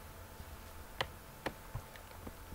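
A soft click sounds as a chess piece is placed on a board.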